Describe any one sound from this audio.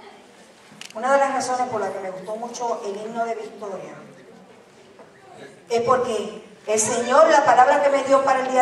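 A woman speaks calmly through a microphone and loudspeakers in a hall.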